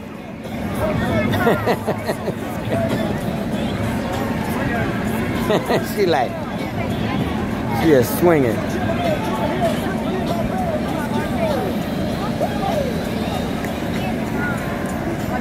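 Children squeal and shout with delight nearby.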